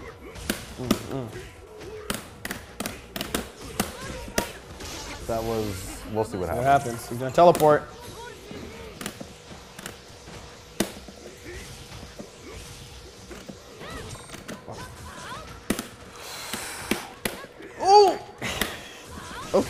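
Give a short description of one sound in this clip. Punches and kicks land with sharp smacking hits.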